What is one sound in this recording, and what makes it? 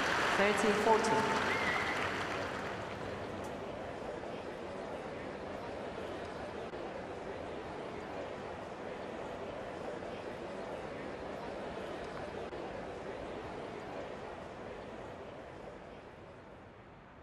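A crowd murmurs steadily in the distance.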